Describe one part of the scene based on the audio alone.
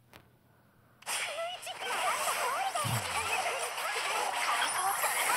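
Game battle sound effects clash and burst rapidly.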